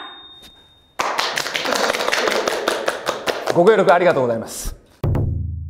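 People clap their hands together briskly.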